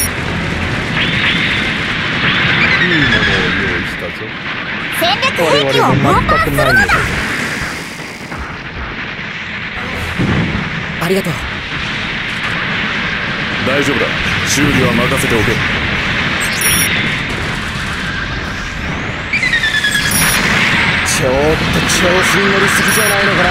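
Gunfire and explosions boom from a video game.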